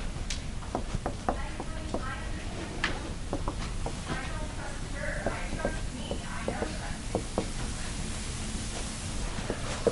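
A marker taps and squeaks on a whiteboard.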